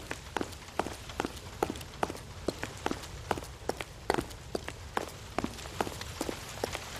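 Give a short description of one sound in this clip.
Footsteps thud on a wooden floor at a steady walking pace.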